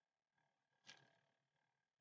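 A small object taps softly onto paper.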